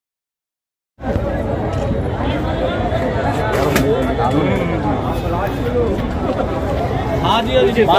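A crowd of men chatter loudly close by, outdoors.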